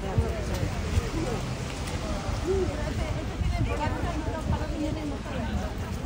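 A woman talks nearby.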